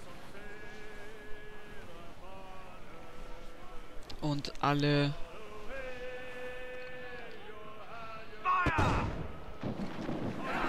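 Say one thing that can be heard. Waves splash against a sailing ship's hull.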